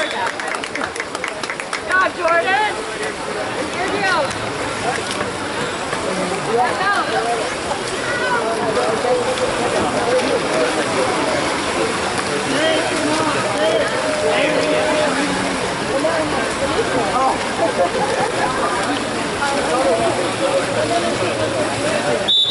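Water splashes as swimmers thrash in an outdoor pool.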